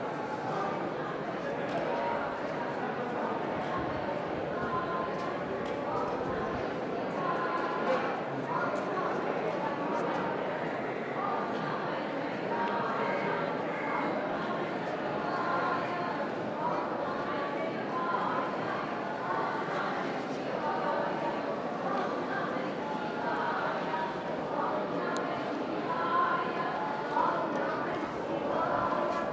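A crowd of men and women chatters in the background outdoors.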